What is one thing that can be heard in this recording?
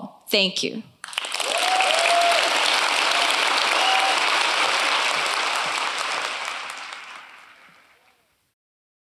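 An audience applauds in a large hall, then the applause fades.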